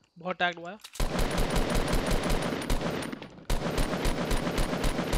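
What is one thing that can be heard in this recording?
A rifle fires rapid repeated shots.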